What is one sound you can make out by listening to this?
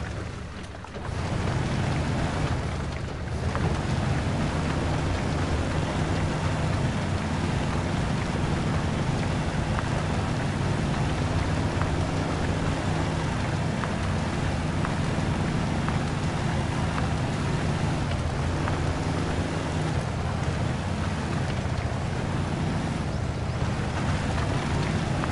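Tyres churn through mud.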